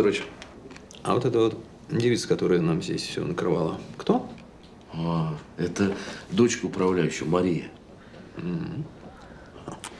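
A younger man asks a short question, close by.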